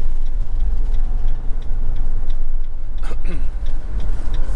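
A car passes by in the other direction.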